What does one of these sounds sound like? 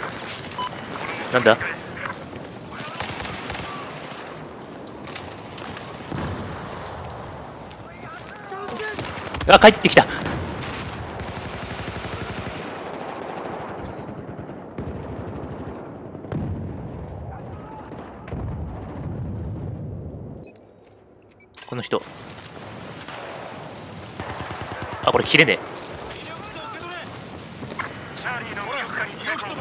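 Gunfire cracks in short bursts.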